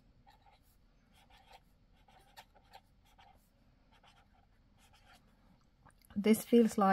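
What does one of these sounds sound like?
A brush pen scratches and swishes softly across paper.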